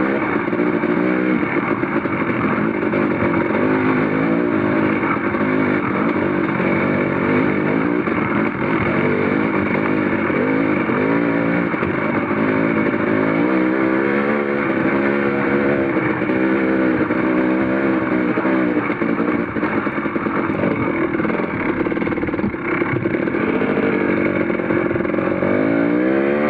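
Tyres crunch over loose stones and gravel.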